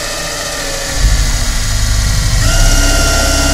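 A drill bit bores into wood with a heavier, labouring whir.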